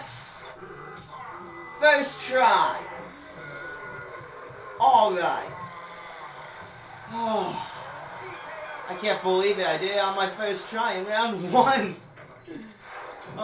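A television plays loud cartoon fight sounds.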